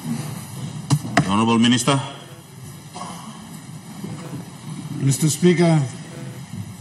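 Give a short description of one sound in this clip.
A man speaks formally through a microphone in a large echoing hall.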